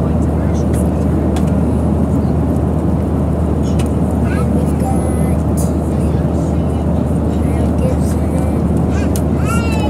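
A young boy talks close by, gasping in surprise.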